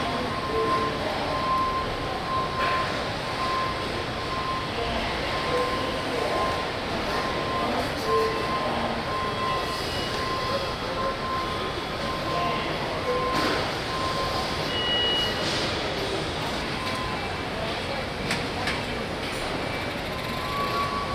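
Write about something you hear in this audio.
Machinery on an assembly line hums and whirs in a large echoing hall.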